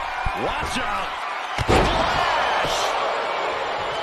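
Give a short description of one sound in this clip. A body slams down hard onto the ring mat.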